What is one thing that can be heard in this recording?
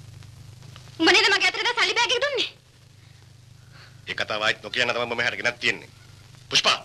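A woman speaks tensely, close by.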